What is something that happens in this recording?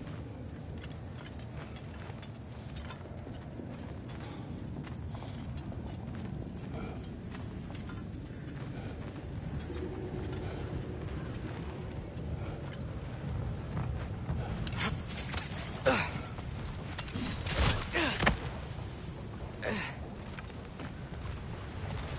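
Heavy footsteps crunch slowly on dirt and gravel.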